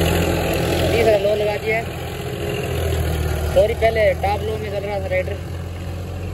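A man talks loudly over the engine.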